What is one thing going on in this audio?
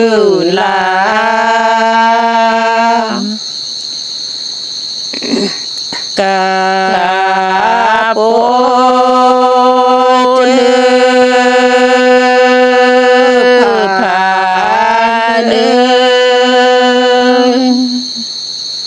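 A man sings slow, long held notes up close.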